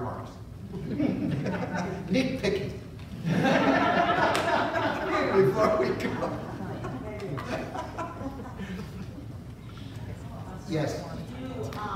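A man speaks with animation to an audience in a large hall, heard from a distance.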